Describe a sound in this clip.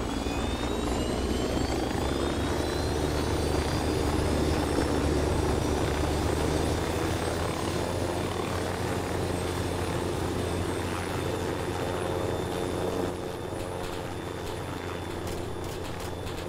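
A helicopter's rotor whirs and its engine drones steadily.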